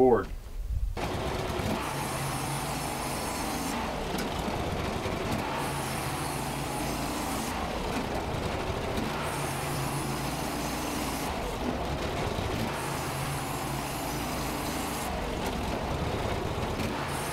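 A portable band sawmill runs, cutting through an oak log.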